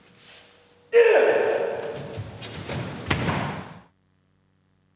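A man lets out a sharp shout in an echoing hall.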